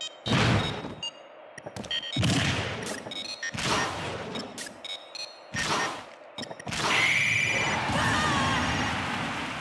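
Video game attacks whoosh through the air.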